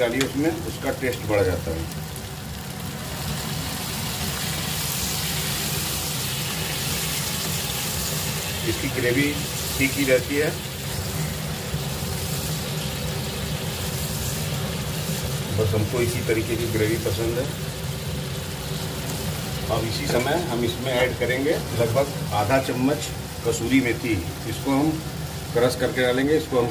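Sauce bubbles and simmers in a pan.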